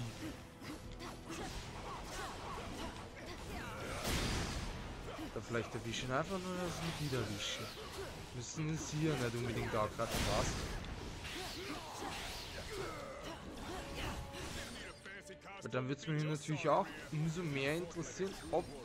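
Blows land with sharp, rapid thuds.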